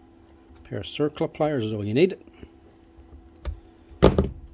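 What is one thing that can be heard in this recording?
Metal pliers click and scrape against a drill chuck.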